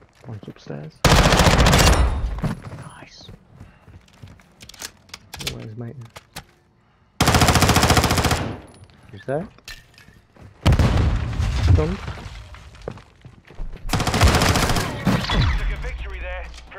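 A gun fires loud rapid bursts.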